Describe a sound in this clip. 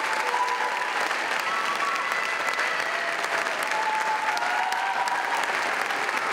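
A mixed choir sings sustained notes in a large hall.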